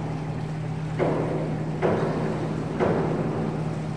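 A diving board thumps and rattles as a diver bounces on it.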